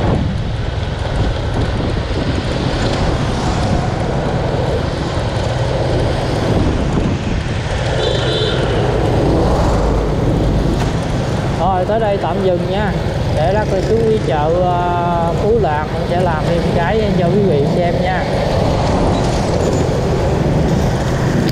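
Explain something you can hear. Other motorbikes and trucks drive by in traffic.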